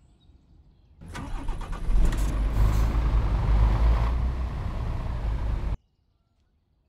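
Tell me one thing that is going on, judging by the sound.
A heavy truck engine rumbles deeply and revs.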